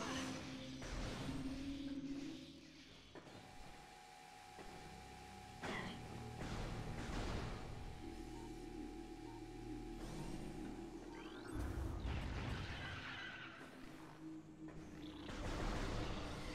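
A door hisses open with a mechanical whoosh.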